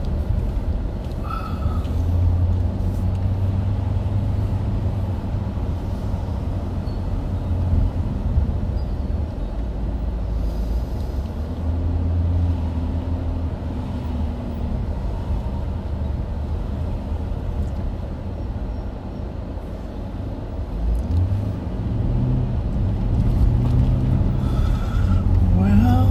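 Tyres rumble over a bumpy road.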